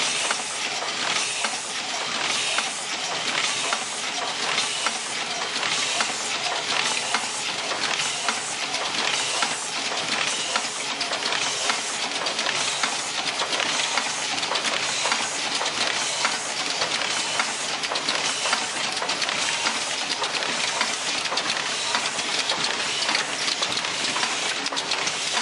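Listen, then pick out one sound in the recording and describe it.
A packaging machine runs with a steady clattering whir.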